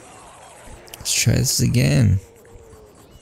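A large creature bursts out of thick goo with a loud roar.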